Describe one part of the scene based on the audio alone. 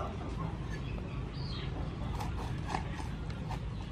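A knife scrapes across a fish on a wooden board.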